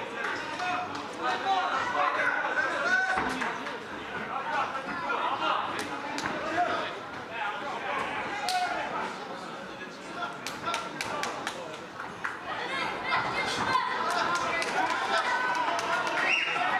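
A crowd talks and shouts in a large echoing hall.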